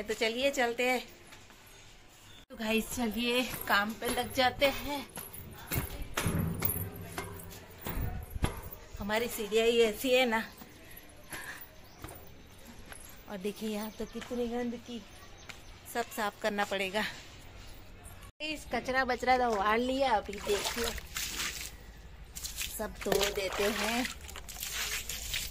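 A middle-aged woman talks with animation close to a microphone.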